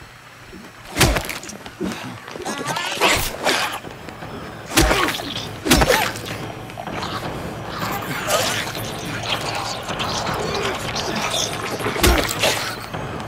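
Heavy blows strike with loud thuds.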